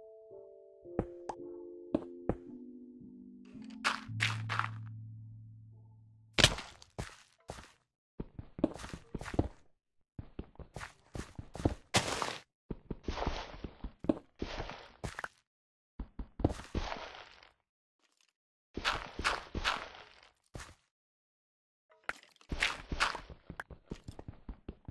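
Stone and dirt crunch in quick bursts as they are dug out.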